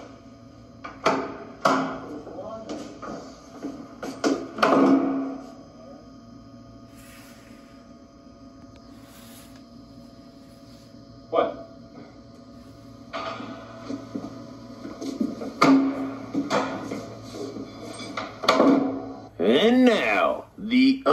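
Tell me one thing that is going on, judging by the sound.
A man talks with animation, heard through a loudspeaker.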